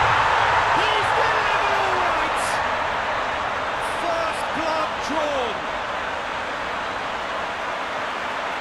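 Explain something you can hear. A large crowd cheers and roars loudly, slowly fading.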